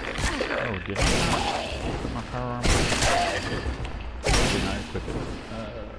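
Heavy melee blows thud against a creature.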